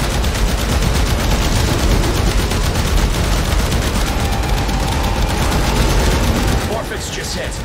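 A weapon fires a loud, continuous crackling energy beam.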